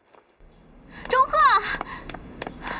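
A young girl calls out in a high voice outdoors.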